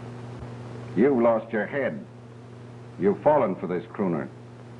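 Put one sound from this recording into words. A man speaks gruffly and sternly.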